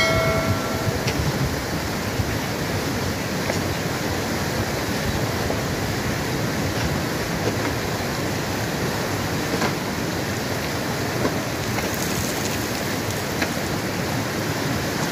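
A fast mountain river rushes over rocks outdoors.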